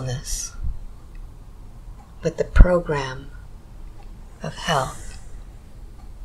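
An older man speaks slowly and drowsily, close by.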